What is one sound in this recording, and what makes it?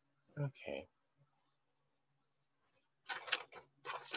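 Paper rustles as a sheet is turned over.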